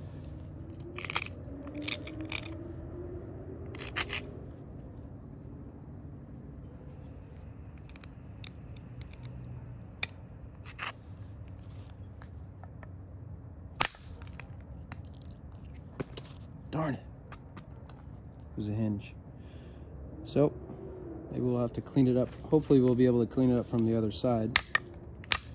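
Small stone flakes snap off with sharp clicks.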